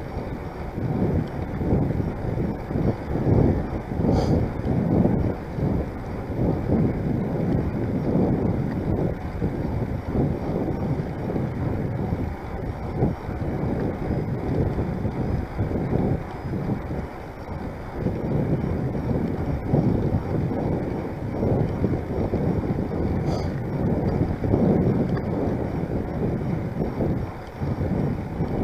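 Wind buffets loudly against a microphone outdoors.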